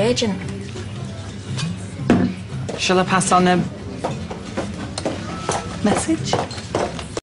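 A young woman speaks briefly.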